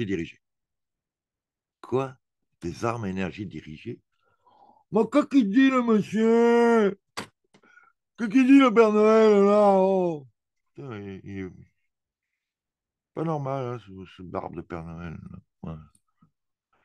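A man speaks with animation, heard through an online call.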